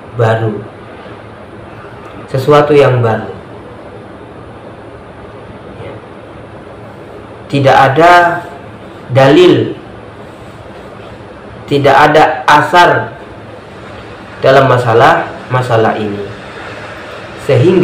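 A man speaks calmly in short phrases with pauses, close to a microphone.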